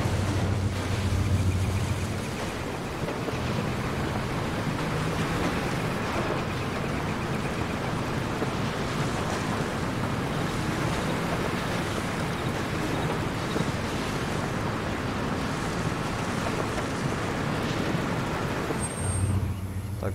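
Tyres roll and crunch over a rough dirt track.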